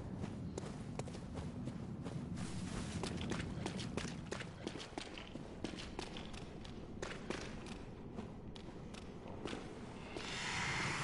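Footsteps crunch and tap quickly on the ground.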